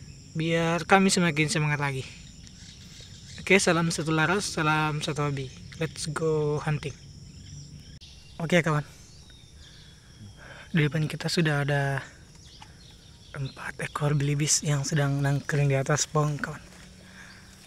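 A man speaks close by in short bursts.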